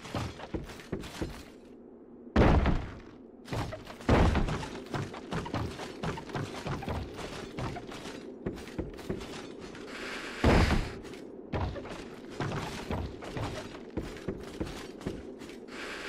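Footsteps clatter on wooden planks.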